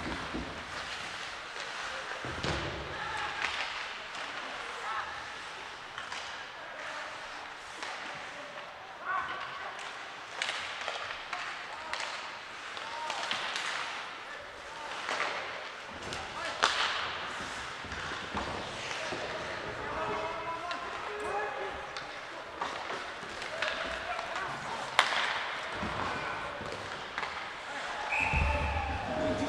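Skates scrape and carve across ice in a large echoing arena.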